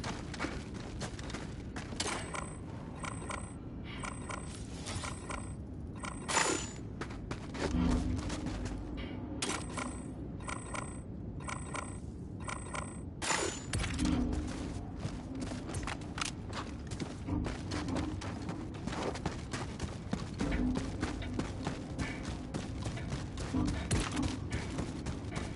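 Heavy boots thud on the ground in quick steps.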